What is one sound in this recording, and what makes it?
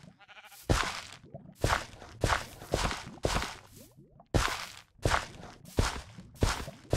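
A hoe tills soil with short, repeated scraping thuds.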